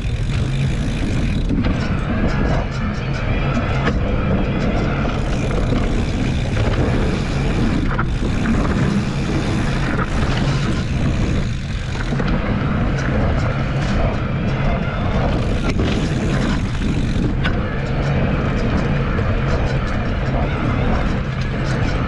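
Knobby bicycle tyres roll and crunch over a dirt trail.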